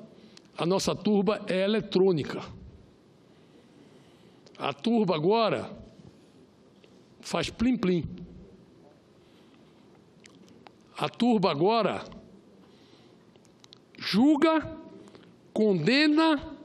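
A middle-aged man speaks firmly into a microphone in bursts, with pauses between phrases.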